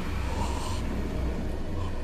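A man cries out in shock.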